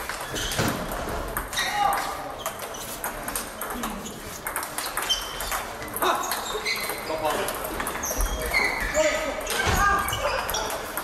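Many voices echo through a large hall.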